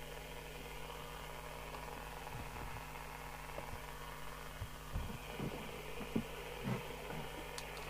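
A plastic device knocks softly as it is handled and set down.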